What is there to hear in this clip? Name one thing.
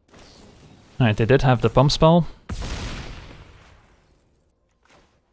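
A magical whoosh sweeps across as a spell is cast.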